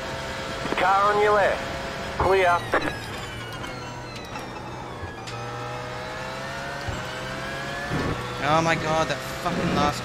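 A race car engine drones steadily, rising and falling in pitch.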